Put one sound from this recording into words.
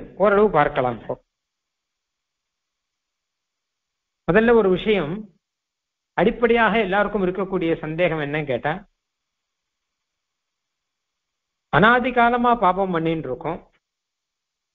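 A man speaks steadily through a microphone, in short phrases with pauses.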